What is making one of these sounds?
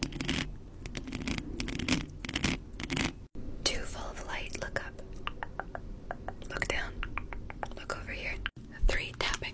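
Fingernails tap and scratch on a microphone's foam cover.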